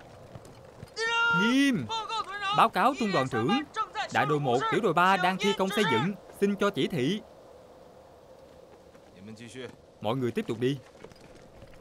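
A man shouts orders loudly.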